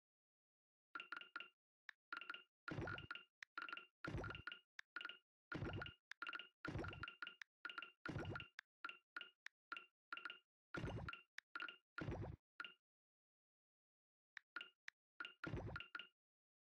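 Short pitched menu blips sound in quick bursts.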